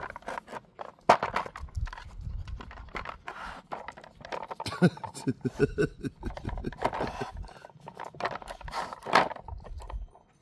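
A rubber toy squeaks as a dog chews it.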